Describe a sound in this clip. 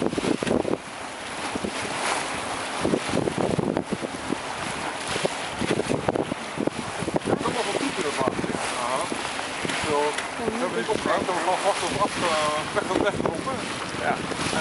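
Choppy water splashes and churns.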